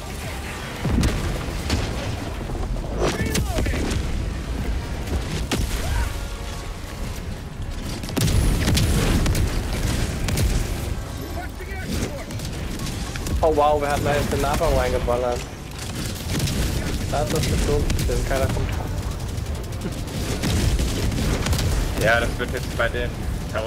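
Explosions boom and rumble one after another.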